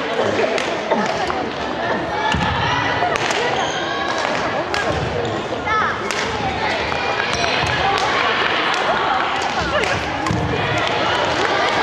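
Shoes squeak and thud on a wooden floor.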